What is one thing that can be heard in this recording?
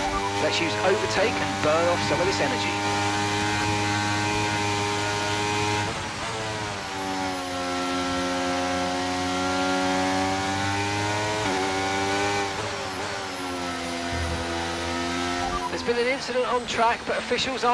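A racing car engine whines loudly, its pitch rising and falling with gear changes.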